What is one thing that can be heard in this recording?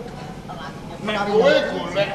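A man answers loudly and expressively through a microphone.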